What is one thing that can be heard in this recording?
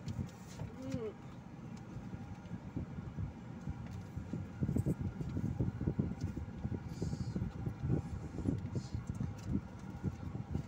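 A car engine rumbles low from inside the car as the car drives slowly.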